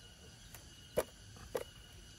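A hand knocks on a plastic box.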